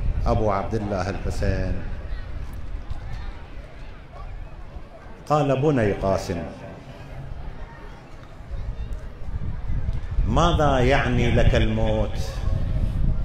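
An elderly man speaks into a microphone in a slow, chanting voice, heard through a loudspeaker in an echoing hall.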